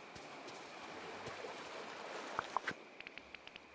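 Footsteps patter quickly on sand.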